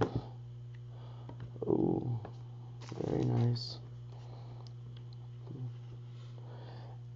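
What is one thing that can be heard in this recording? Playing cards shuffle and riffle with soft clicks.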